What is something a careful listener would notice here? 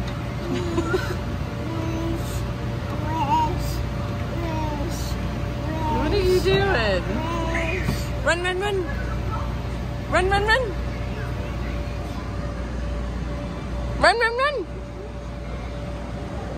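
A toddler babbles and squeals happily close by.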